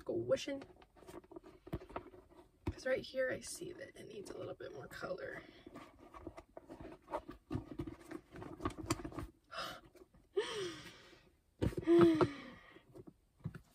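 A soft leather bag creases and rustles as it is folded.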